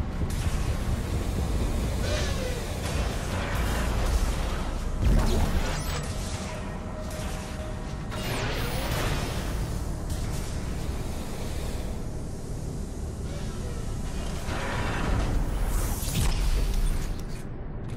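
Suit thrusters hiss in short bursts.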